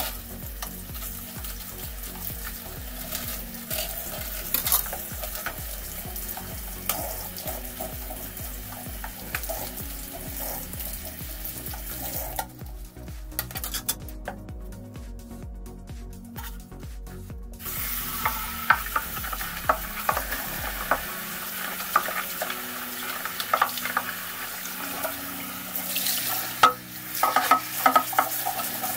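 Glass dishes clink and knock against each other in water.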